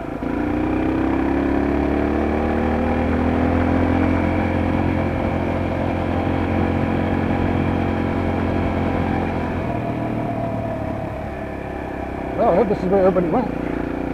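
A motorbike engine hums steadily and shifts in pitch as it rides along.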